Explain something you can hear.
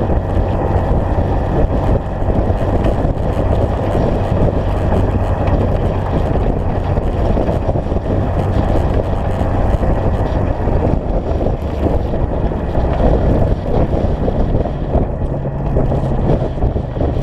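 Tyres crunch and rumble over a gravel dirt road.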